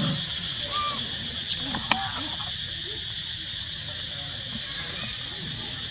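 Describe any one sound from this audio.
A macaque chews a banana.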